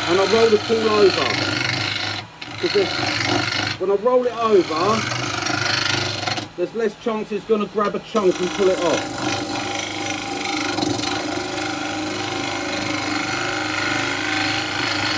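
A gouge scrapes and hisses against spinning wood.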